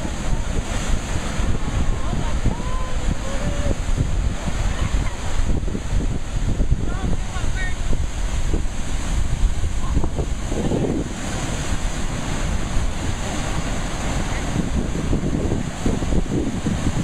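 Heavy surf crashes and churns loudly against rocks.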